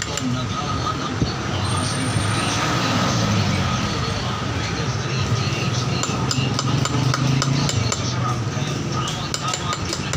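A hammer taps a hand chisel into granite.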